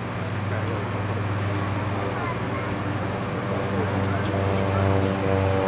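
A small propeller plane's engine drones steadily and grows louder as the plane speeds along a runway.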